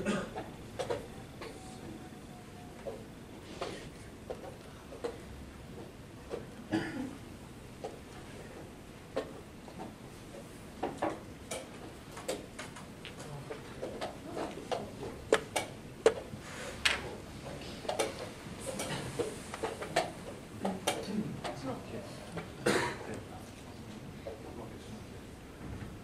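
A wooden chess piece knocks softly on a board.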